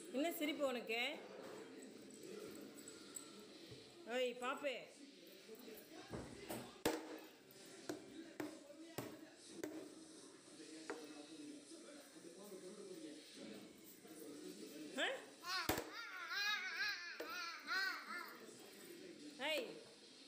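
A young child laughs and squeals close by.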